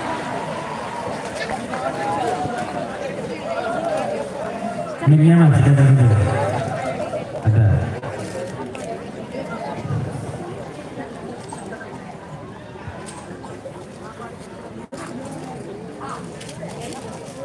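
A crowd murmurs nearby.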